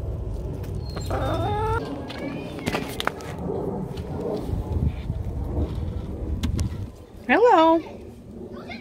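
Hens cluck and squawk close by.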